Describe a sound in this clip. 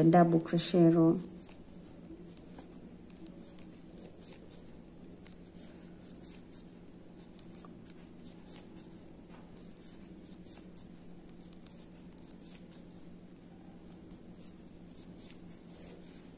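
A crochet hook taps and scrapes softly through yarn.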